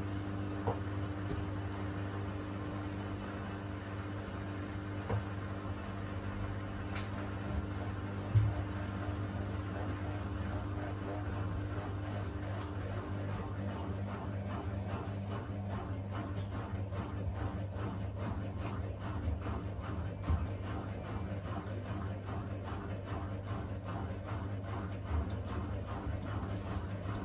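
Wet laundry tumbles and thuds softly inside a washing machine drum.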